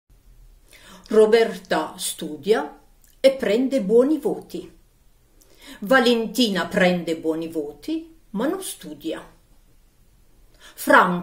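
An elderly woman speaks expressively and theatrically, close to a microphone.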